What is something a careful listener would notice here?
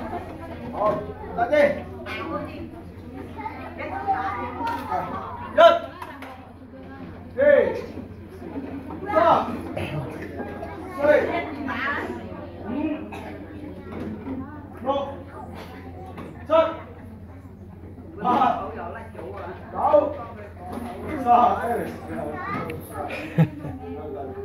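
Children chatter in the background.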